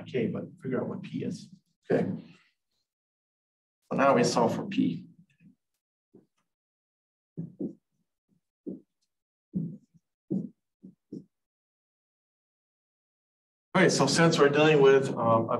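A man speaks calmly and clearly, as if teaching, close to a microphone.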